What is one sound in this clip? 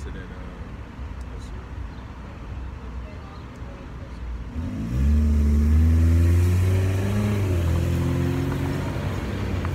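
Traffic hums along a street outdoors.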